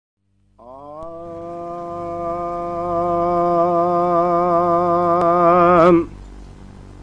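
An elderly man chants a long, drawn-out note through a microphone, wavering at the end.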